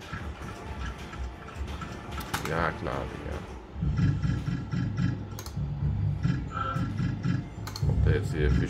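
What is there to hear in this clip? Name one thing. A slot machine plays a loud, bouncy electronic tune.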